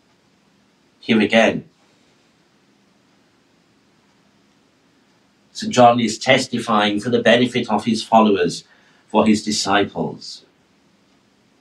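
A middle-aged man speaks calmly into a microphone, in short bursts between pauses.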